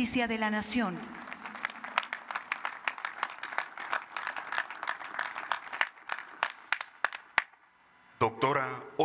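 An audience applauds outdoors.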